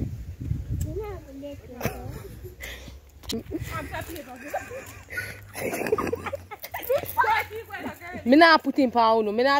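Young women talk and shout with animation close by, outdoors.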